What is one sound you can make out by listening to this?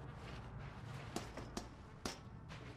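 Boots clank on the rungs of a metal ladder.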